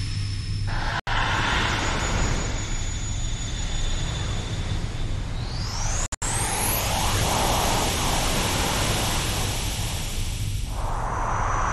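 A loud rushing whoosh of energy roars steadily.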